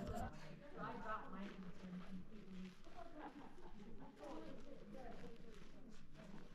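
A woman talks calmly close by, outdoors.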